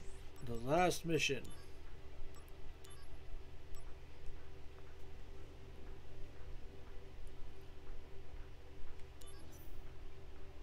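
Short electronic menu blips sound as selections change.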